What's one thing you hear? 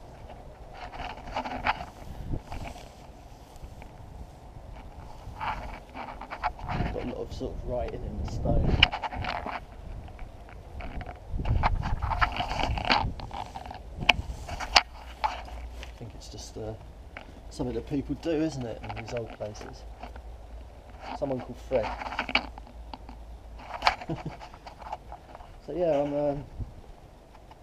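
A young man talks calmly and close by, now and then.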